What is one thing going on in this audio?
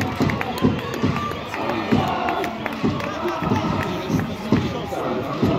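Drums pound in a steady beat among the crowd.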